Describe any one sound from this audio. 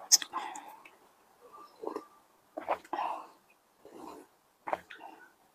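A young woman gulps and swallows loudly.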